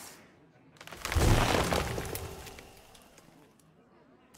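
A magical spell effect bursts with a shimmering blast.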